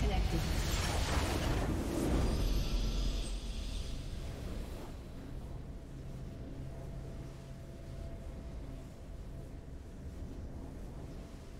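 A triumphant musical sting swells and then fades.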